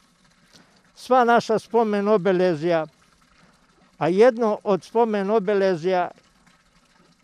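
An elderly man speaks calmly through a mask, close to a microphone.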